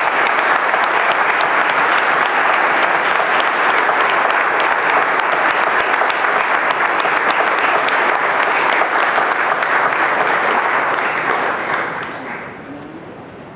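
A crowd applauds and cheers loudly in a large hall, then dies away.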